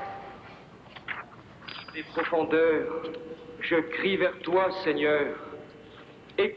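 A man reads out slowly through a microphone in a large echoing hall.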